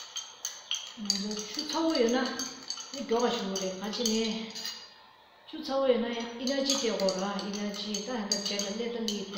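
A middle-aged woman speaks clearly and calmly, as if teaching.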